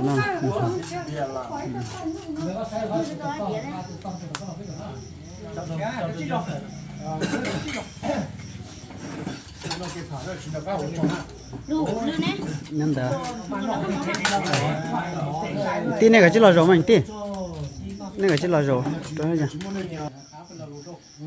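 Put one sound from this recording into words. Several men talk and laugh together at close range.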